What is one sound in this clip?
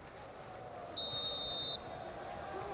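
A referee blows a whistle once.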